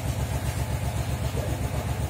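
A glass cutter scores a sheet of glass with a thin scratch.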